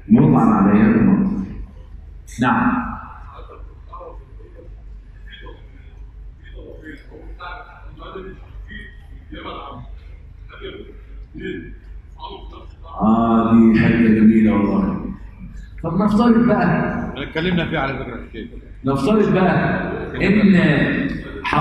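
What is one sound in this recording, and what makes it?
An older man speaks into a microphone in a calm, measured voice.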